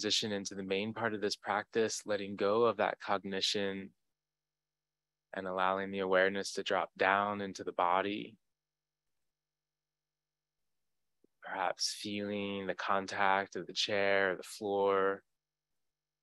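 A man speaks calmly and slowly into a microphone.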